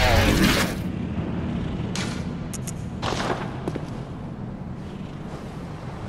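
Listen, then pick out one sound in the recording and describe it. Footsteps tap on a stone path.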